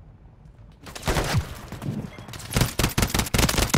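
A rifle fires in rapid, loud bursts.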